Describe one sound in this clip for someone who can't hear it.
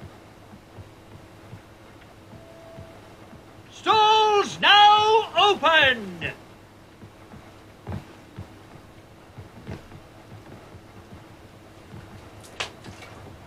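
Footsteps thump on wooden floors and stairs.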